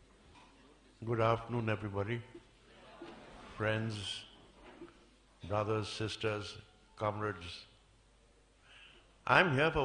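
An elderly man speaks calmly into a microphone, heard through loudspeakers in a large room.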